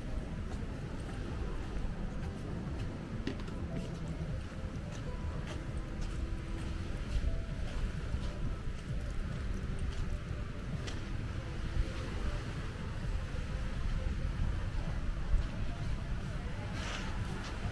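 Small waves wash softly onto a sandy shore.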